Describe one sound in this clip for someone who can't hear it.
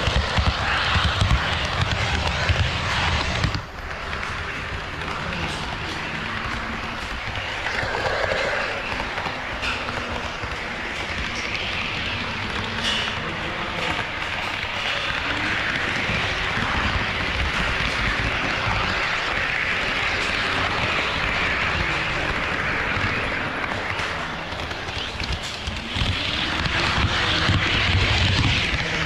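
A model train rumbles and clatters steadily along its track, close by.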